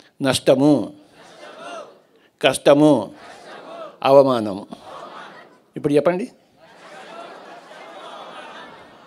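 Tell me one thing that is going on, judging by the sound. An elderly man speaks calmly and slowly into a microphone, heard through a loudspeaker with an echo.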